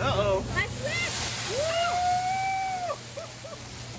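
Flames burst up with a loud whoosh.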